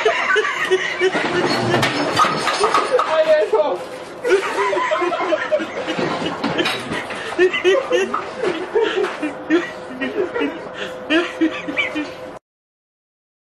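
Young men laugh and shout loudly nearby.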